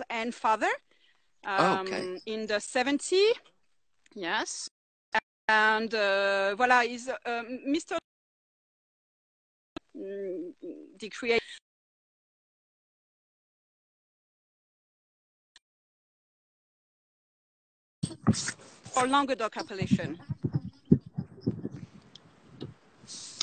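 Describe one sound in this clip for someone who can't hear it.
A woman talks over an online call.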